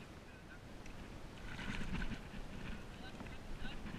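A caught fish splashes as it is pulled out of the water.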